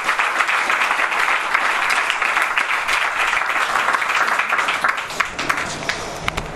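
An audience claps and applauds in a room.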